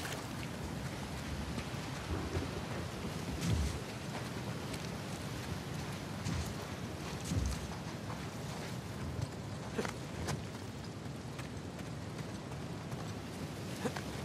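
Footsteps run across sand.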